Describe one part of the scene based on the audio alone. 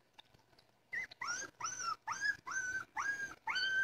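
Puppies whine and squeal in high, repeated cries.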